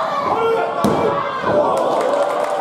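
A referee slaps the mat loudly during a pin count.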